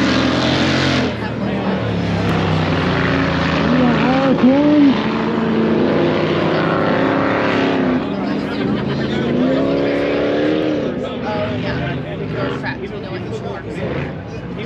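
Off-road vehicle engines rev and roar nearby, rising and falling in pitch.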